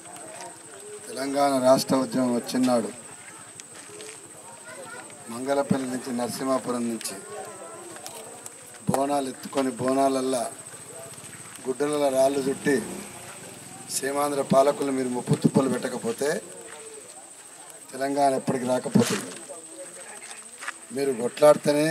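A middle-aged man speaks loudly into a microphone through a loudspeaker, in bursts with pauses.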